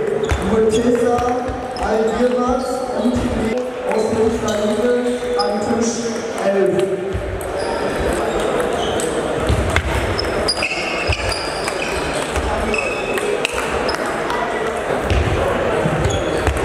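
Table tennis balls click off paddles and tables in a large echoing hall.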